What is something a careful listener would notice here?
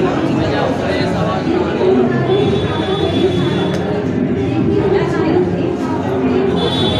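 A young woman speaks into a microphone through a loudspeaker.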